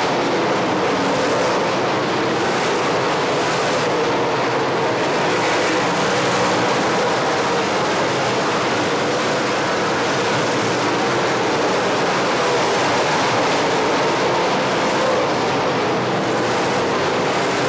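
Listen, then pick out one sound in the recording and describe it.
Race car engines roar loudly and steadily.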